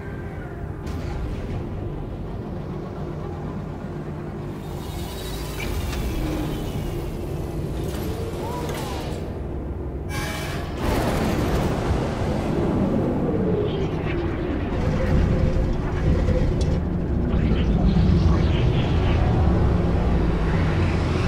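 A spaceship engine hums and roars steadily, growing louder partway through.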